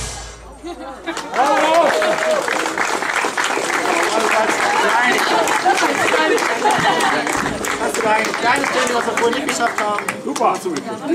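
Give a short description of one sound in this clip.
A crowd of adults chatters and cheers.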